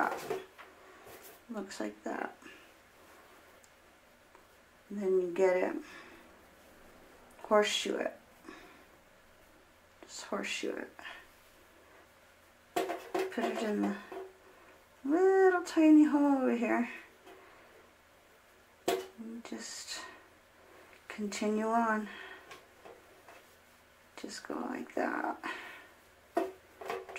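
A woman speaks calmly and clearly, close by, in short phrases.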